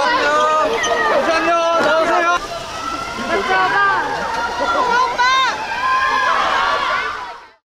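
A crowd of young women screams and shrieks with excitement nearby.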